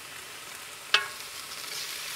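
Metal tongs scrape and clink in a pan.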